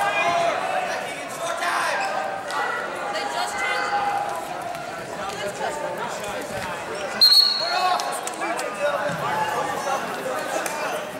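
Shoes squeak on a rubber mat.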